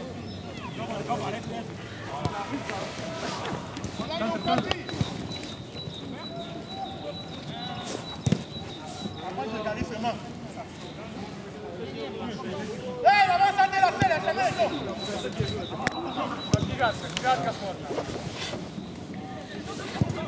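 Men shout and call out to each other across a pitch.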